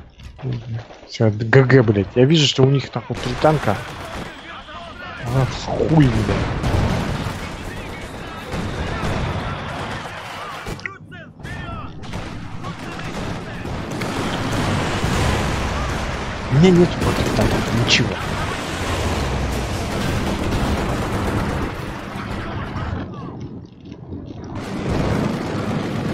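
Machine guns rattle in rapid bursts.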